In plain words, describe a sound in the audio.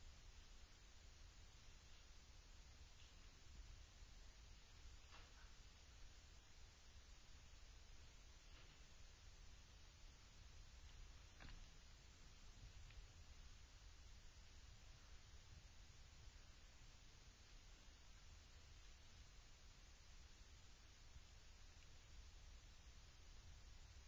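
Soft slippered feet tap and creak on a taut wire.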